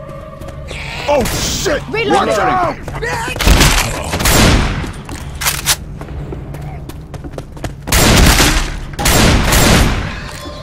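Zombies snarl and screech.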